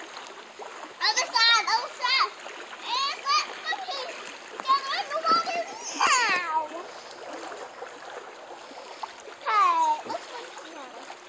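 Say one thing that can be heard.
A young girl calls out in a high, excited voice nearby.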